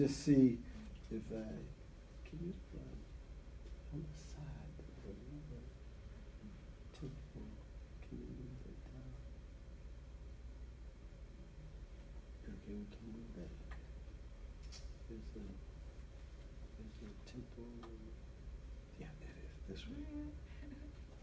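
A man murmurs quietly.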